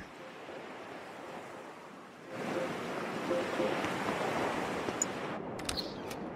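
Waves wash and churn on the sea.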